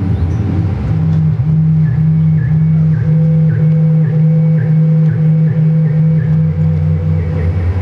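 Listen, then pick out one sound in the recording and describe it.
An electronic beat pulses in a steady rhythm.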